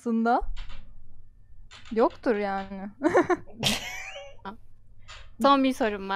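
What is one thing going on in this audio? A woman talks with animation through a headset microphone.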